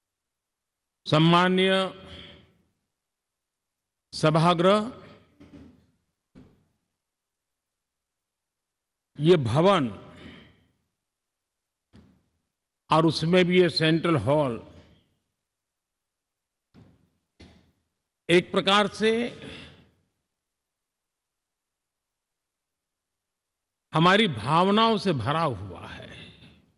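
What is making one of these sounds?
A man gives a speech through a microphone in a large echoing hall, in slow phrases with long pauses.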